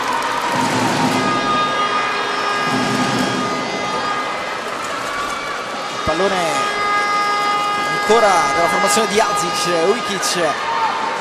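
Sneakers squeak on a sports court.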